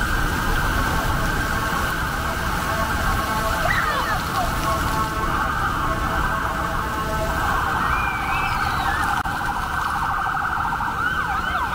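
Water jets spray and splash onto paving.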